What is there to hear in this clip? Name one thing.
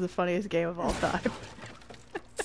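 A wooden crate breaks apart with a splintering crash.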